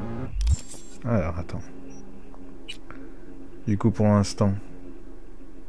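Electronic interface tones swoosh and chirp.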